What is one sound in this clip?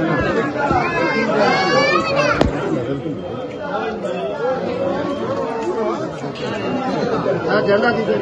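A crowd of men and women talk and call out close by, all at once.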